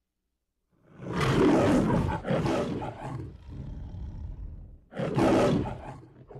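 A lion roars loudly, twice.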